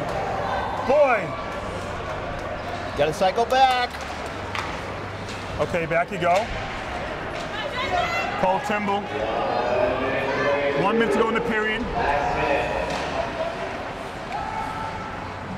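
A crowd cheers and shouts in an echoing rink.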